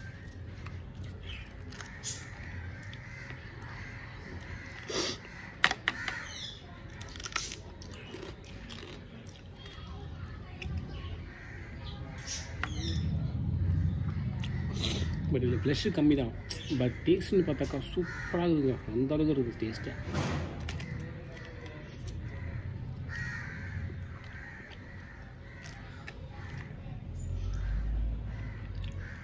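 A man crunches loudly on crispy food while eating, up close.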